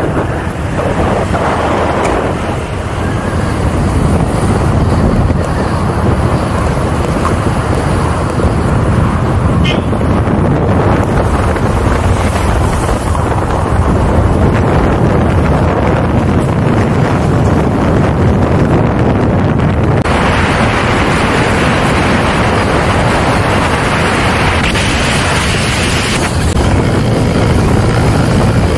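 Wind rushes past the moving car.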